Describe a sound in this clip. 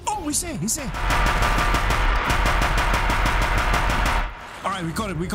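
A heavy machine gun fires in a long, rapid burst.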